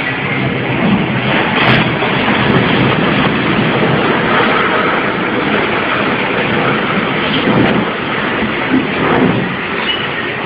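A concrete building collapses with a heavy, rumbling roar that slowly dies down.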